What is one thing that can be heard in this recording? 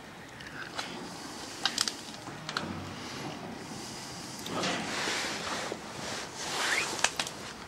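A bear gnaws on a wooden stick, with sharp cracks and crunches.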